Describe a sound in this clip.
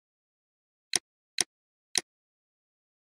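Short menu clicks sound three times in quick succession.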